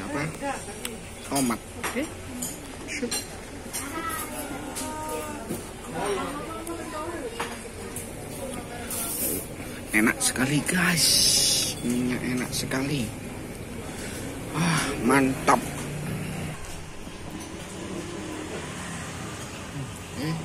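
Several men and women chat nearby in a busy room.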